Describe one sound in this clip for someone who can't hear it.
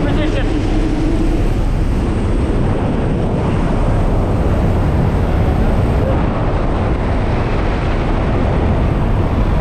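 Wind roars loudly past an open aircraft door in flight.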